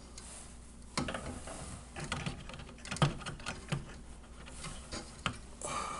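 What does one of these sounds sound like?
Plastic pliers click and knock against metal parts inside a computer case.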